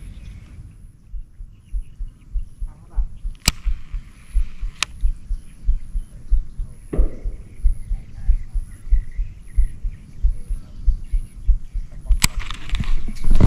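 A fishing reel clicks steadily as its handle is wound.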